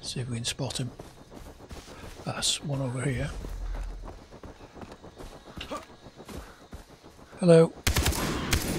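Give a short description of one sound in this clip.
An older woman talks with animation through a close microphone.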